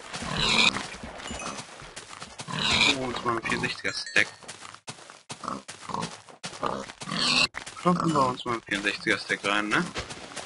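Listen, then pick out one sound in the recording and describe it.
A sword thumps against a pig.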